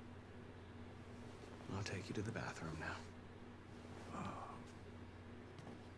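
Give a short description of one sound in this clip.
An elderly man answers weakly.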